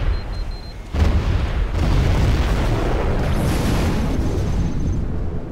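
A huge explosion roars and rumbles.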